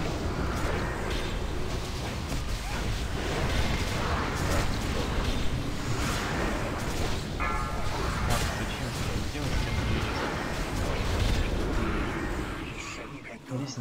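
Magic spells crackle and blast in a fierce battle.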